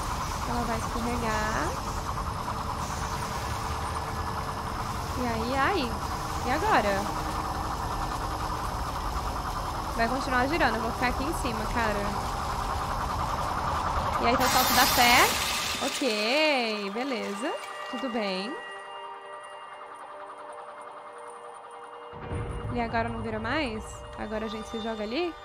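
A young woman talks animatedly into a nearby microphone.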